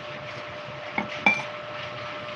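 A spoon clinks against a mug.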